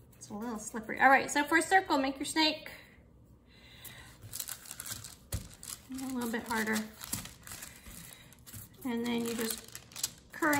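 Paper crinkles softly as hands roll clay on it.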